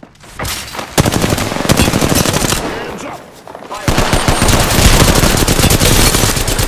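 Rapid gunfire rattles loudly and close.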